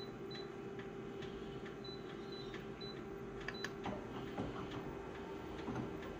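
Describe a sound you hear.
A copier hums steadily.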